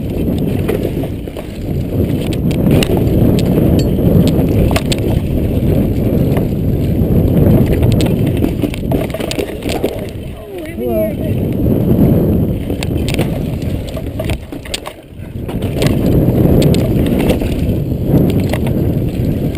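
Wind rushes loudly past a mountain bike speeding downhill.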